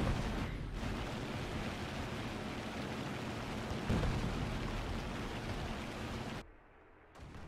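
An aircraft engine drones loudly and steadily.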